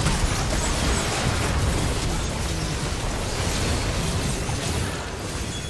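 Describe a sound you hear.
Video game combat effects clash and blast during a fantasy battle.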